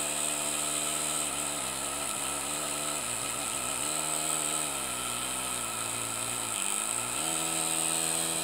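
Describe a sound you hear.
A small engine's whir dips and drops in pitch as it is slowed by hand.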